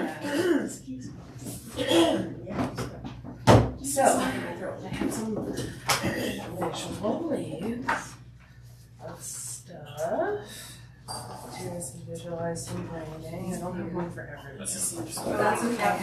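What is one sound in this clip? Women talk calmly nearby.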